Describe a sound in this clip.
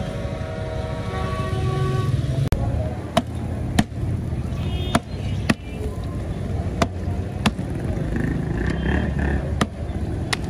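Traffic hums outdoors nearby.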